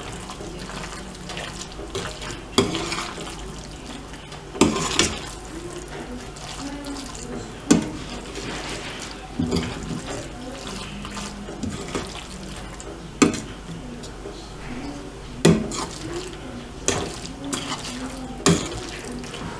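A metal spoon scrapes and clinks against a pan while stirring food.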